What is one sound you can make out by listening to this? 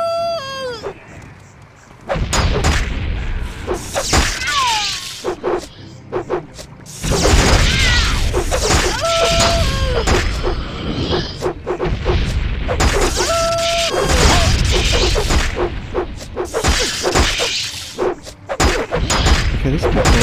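Magic spells burst with a bright whooshing chime.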